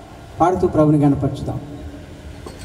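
A man speaks loudly into a microphone through loudspeakers, in a large echoing space.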